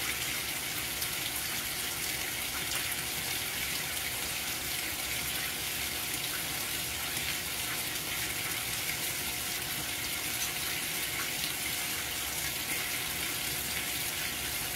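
A washing machine hums as its drum turns.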